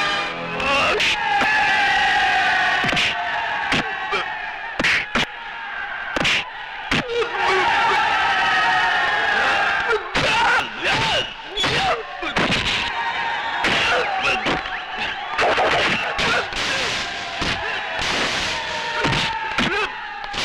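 Blows land with sharp, heavy thuds.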